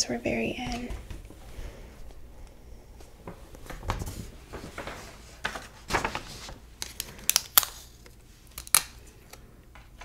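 Paper rustles and crinkles close to a microphone.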